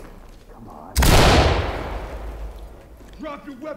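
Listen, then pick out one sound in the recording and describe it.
A rifle fires a single loud shot that echoes and fades.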